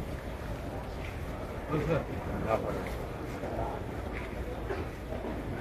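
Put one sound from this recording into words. A large crowd of men murmurs and talks close by, in a large echoing space.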